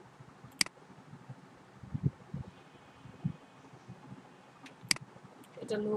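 A computer mouse clicks sharply.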